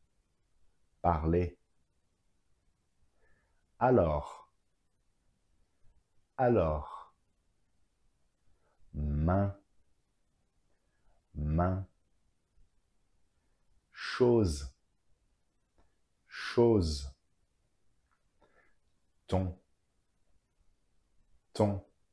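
A man speaks single words clearly into a close microphone, with short pauses between them.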